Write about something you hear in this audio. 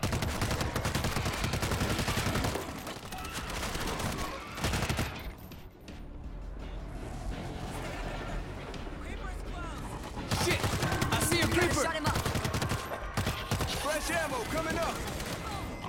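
Zombies snarl and groan.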